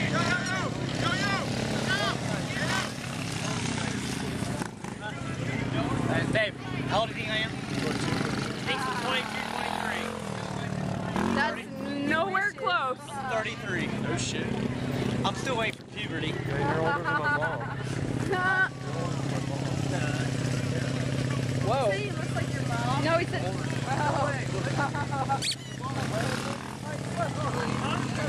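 A small motorbike engine buzzes nearby.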